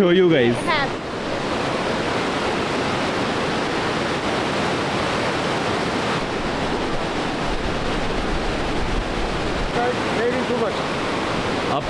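A waterfall roars loudly and steadily.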